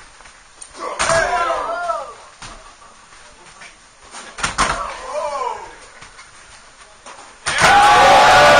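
A body slams hard onto a wrestling stage with a loud thud.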